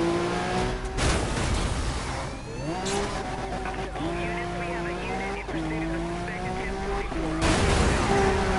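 A car crashes hard into a barrier.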